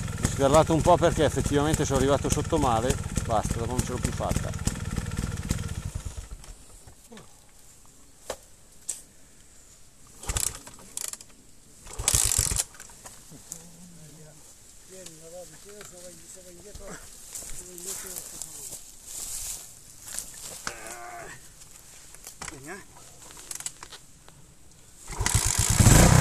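A motorbike engine revs hard, falls quiet and then roars again.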